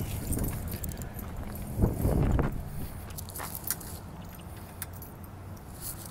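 A dog's paws patter across dry grass and dirt.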